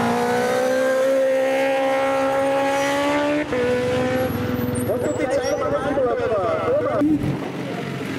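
A racing motorcycle engine screams past at high speed.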